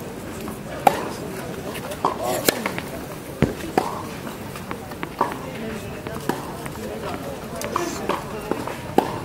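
A tennis ball is struck sharply with a racket outdoors.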